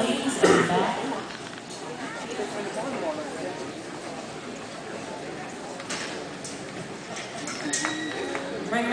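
A crowd murmurs and chatters throughout a large echoing arena.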